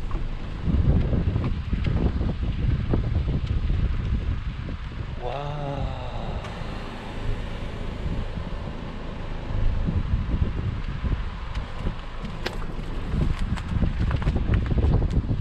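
Wind gusts outdoors, buffeting the microphone.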